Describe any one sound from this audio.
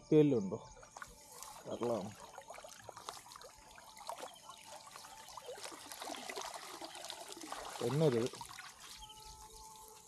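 Water splashes and drips as a net is pulled out.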